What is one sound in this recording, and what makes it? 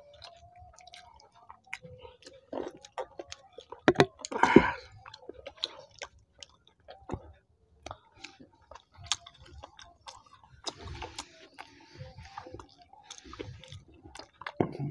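A man chews and smacks his lips loudly close to a microphone.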